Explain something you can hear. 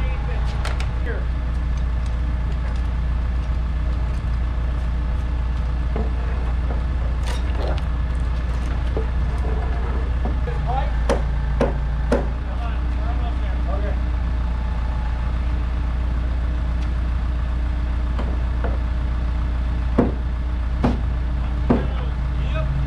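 Wooden framing knocks and bangs sharply now and then.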